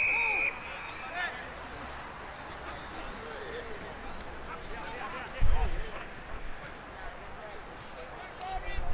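Several men shout and argue outdoors, close by.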